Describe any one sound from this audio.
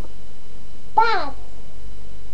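A young woman lets out a high, sliding cry close by.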